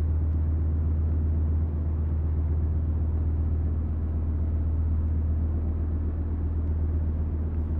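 A heavy vehicle engine idles with a steady low rumble.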